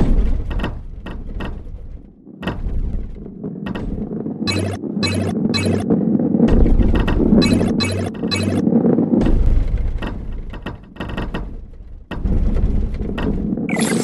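Wooden crates knock and clatter as a ball hits them.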